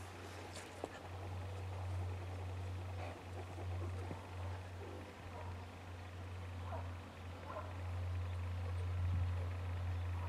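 A dog sniffs loudly at a wall.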